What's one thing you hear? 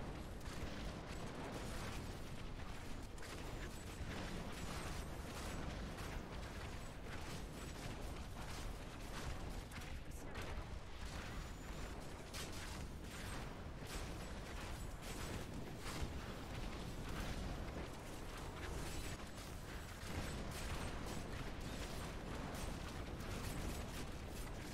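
Many short magical impacts crack in quick succession.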